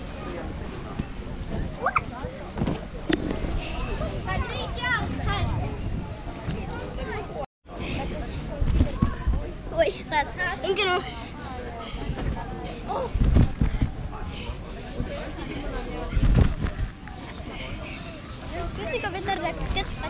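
A young girl thumps onto a trampoline as she jumps.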